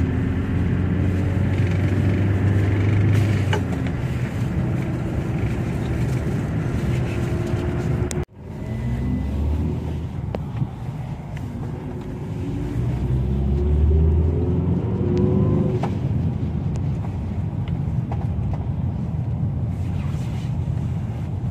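Tyres roll on a snowy road.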